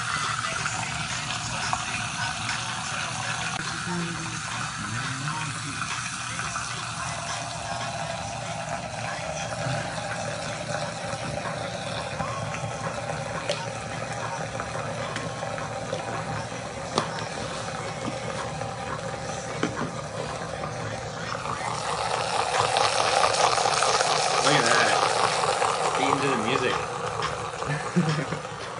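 A small electric mixer motor whirs steadily, swirling liquid.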